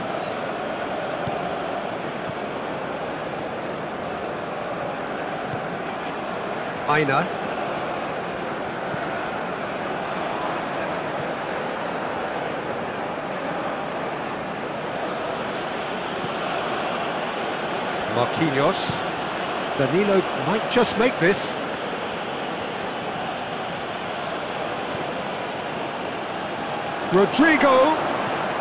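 A stadium crowd murmurs steadily throughout.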